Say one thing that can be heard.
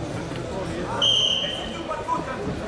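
A referee blows a whistle.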